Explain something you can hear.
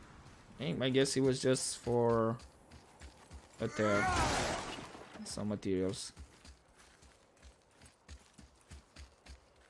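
Heavy footsteps crunch through snow.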